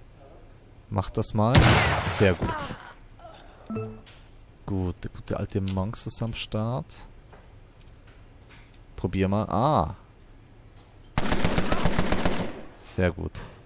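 A submachine gun fires in rapid bursts.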